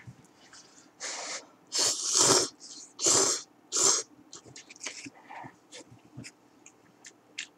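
A young man slurps noodles loudly and close by.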